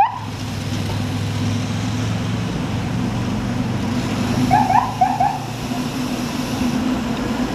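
Wind rushes steadily past while cycling outdoors.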